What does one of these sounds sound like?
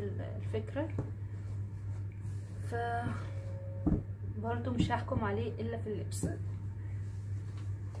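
Soft fabric rustles as it is smoothed out.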